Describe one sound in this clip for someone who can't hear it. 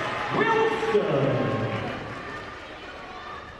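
A crowd cheers loudly in a large echoing gym, then quiets down.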